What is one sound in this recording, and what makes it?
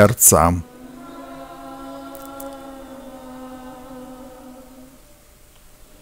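A crowd sings together in a long, drawn-out tone.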